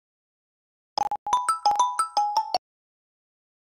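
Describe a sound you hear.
A phone ringtone chimes.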